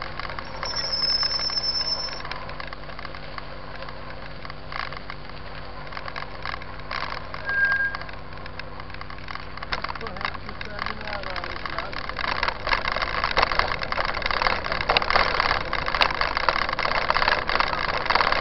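Bicycle tyres crunch and rattle over a rough dirt track.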